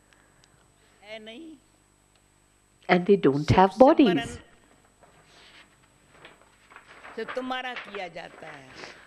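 An elderly woman speaks calmly into a microphone.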